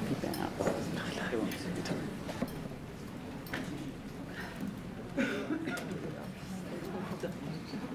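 Footsteps shuffle across a floor.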